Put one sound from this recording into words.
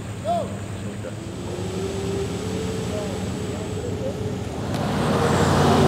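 A pickup truck drives through floodwater.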